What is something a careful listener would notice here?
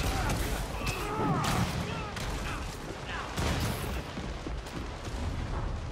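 Quick swooshing whooshes as a figure swings through the air.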